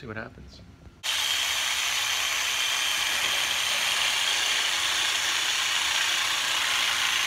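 A power saw whines loudly and steadily.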